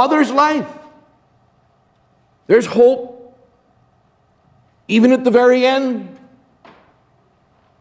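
An older man speaks slowly and calmly through a microphone in a large echoing room.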